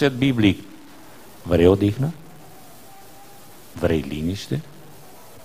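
A man speaks with emphasis into a microphone, in short bursts with pauses.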